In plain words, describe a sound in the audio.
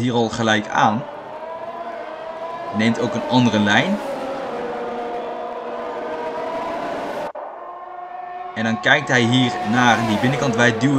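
Racing car engines whine at high revs as the cars speed past.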